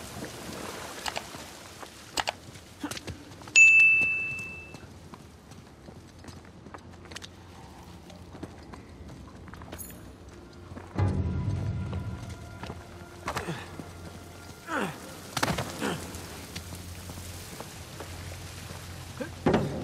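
Footsteps scuff and crunch on rocky ground.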